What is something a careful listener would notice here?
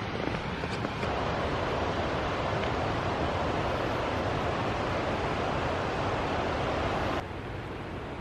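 A river rushes loudly over rocks outdoors.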